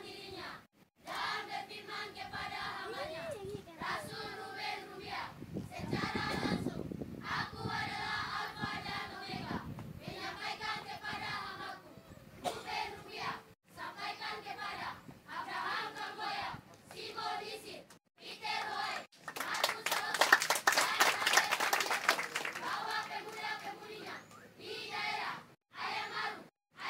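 A children's choir sings together outdoors through loudspeakers.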